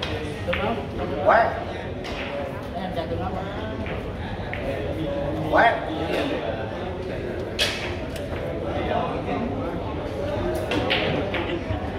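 Men talk in a murmur in the background in a large room.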